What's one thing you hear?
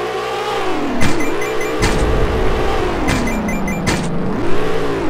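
A bright electronic chime rings out twice.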